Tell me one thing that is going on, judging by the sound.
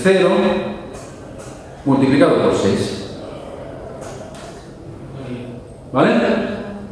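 A man lectures through a microphone in a large echoing hall.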